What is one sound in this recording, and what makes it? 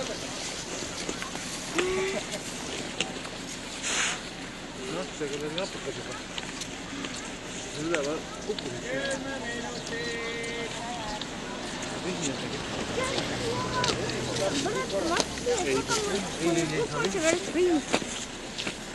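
Several men and women talk and call out at a distance, outdoors.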